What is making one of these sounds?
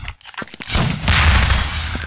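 Gunfire bursts out in rapid shots.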